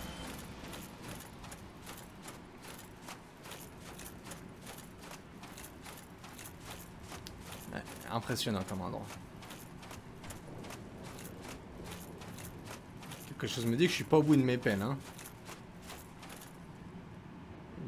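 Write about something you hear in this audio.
Footsteps in armour thud quickly and steadily on hard ground.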